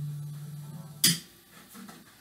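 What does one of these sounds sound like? A guitar cable pops as it is unplugged from an amplifier.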